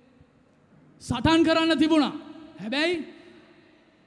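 A man preaches loudly and with passion through a microphone, his voice carried over loudspeakers.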